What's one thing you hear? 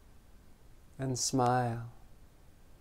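A man hums a short low note close by.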